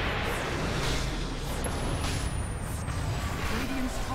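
A fiery beam strikes with a loud whoosh.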